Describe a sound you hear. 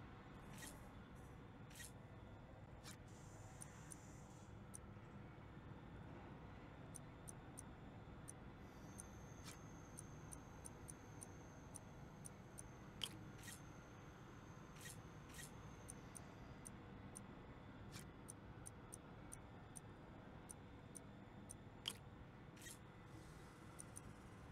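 Short, soft electronic clicks and blips sound at irregular intervals.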